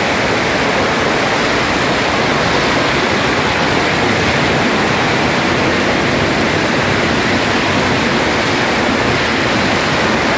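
Firecrackers crackle and pop rapidly all around, very loud.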